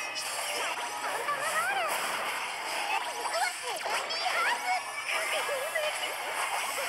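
Magic spell effects whoosh and shimmer with bright chimes.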